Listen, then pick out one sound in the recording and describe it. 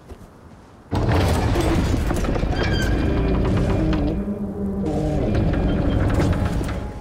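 A heavy door grinds and rumbles as it is pushed open.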